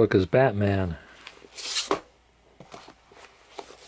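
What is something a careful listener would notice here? A book's cover flips open.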